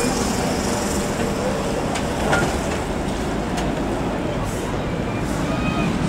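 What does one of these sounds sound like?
An articulated trolleybus hums past.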